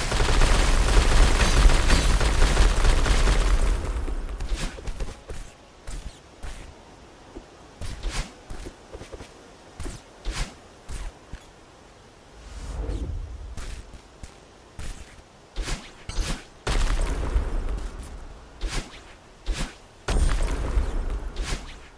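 Short whooshing game sound effects play again and again as a small character dashes and jumps.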